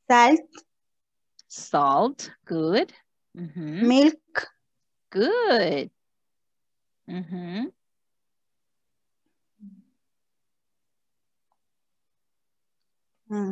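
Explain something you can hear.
A woman speaks slowly and clearly over an online call, as if teaching.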